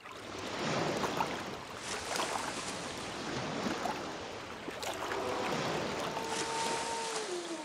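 Water splashes and laps against a small boat.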